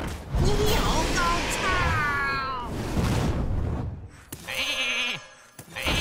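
A fiery attack bursts with a crackling blast.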